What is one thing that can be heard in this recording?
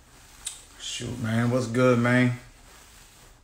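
A man speaks briefly and calmly, close to a phone microphone.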